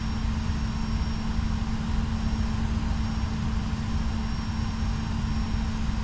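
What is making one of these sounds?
Jet engines hum steadily with a low rumble.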